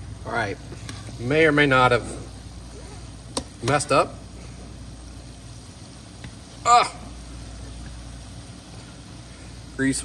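Metal tongs clink against a pot.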